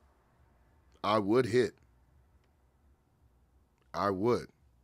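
A young man speaks in short, expressive bursts close to a microphone.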